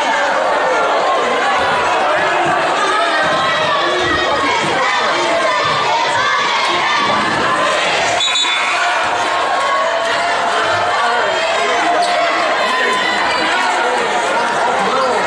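A crowd of spectators chatters and cheers loudly in an echoing gym.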